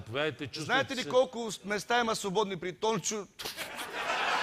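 A man speaks loudly and with animation to an audience in a large hall.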